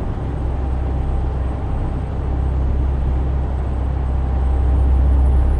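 Tyres roll on a road with a steady hum.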